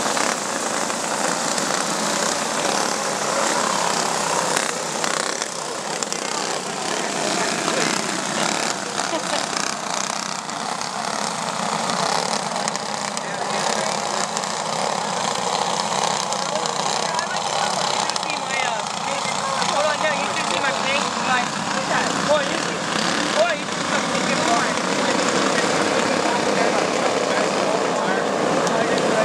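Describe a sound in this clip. Racing kart engines buzz and whine as a pack of karts speeds around a track outdoors.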